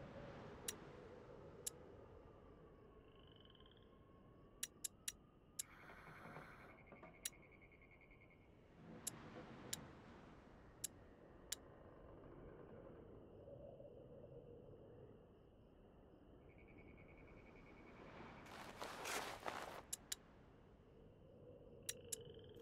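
Short interface clicks tick now and then.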